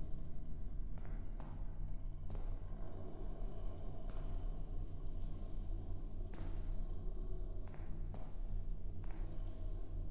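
Slow footsteps tap on a hard tiled floor in an echoing room.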